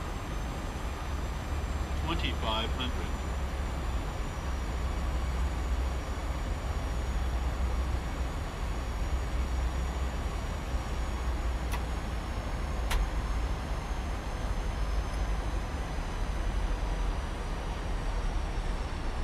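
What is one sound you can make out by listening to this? Jet engines hum steadily.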